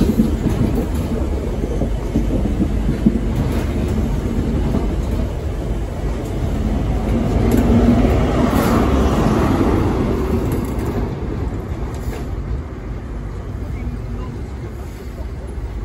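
A passenger train rumbles past at speed, close by.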